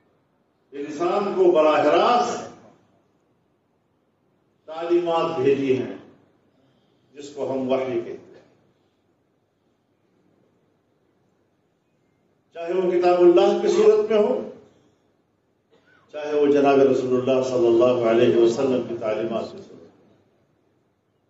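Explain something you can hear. An elderly man speaks slowly into a microphone, in short phrases with pauses.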